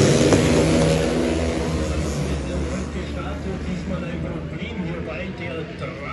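People in a crowd chatter nearby.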